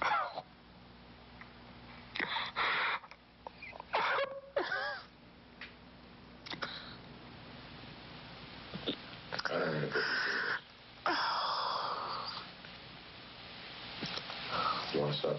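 A middle-aged man sobs close by.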